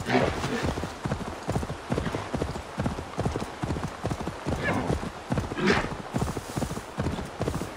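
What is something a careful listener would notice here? A horse's hooves thud rhythmically at a gallop.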